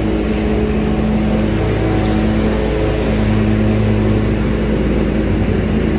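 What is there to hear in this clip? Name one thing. A lawn mower engine drones steadily.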